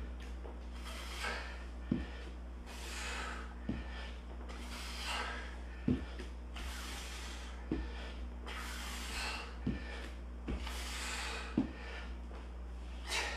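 A man breathes hard with each push-up.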